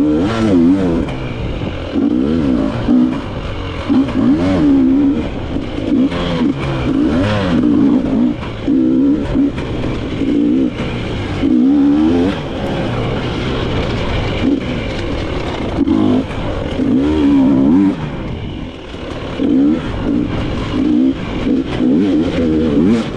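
A dirt bike engine revs up and down repeatedly, close by.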